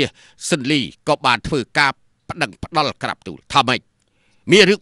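A man speaks calmly and steadily.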